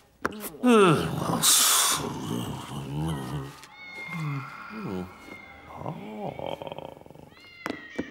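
A man murmurs to himself in a cartoon voice.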